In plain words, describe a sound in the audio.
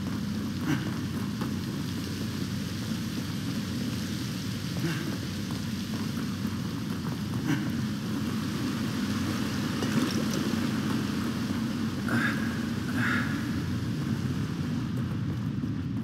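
Water pours and splashes steadily.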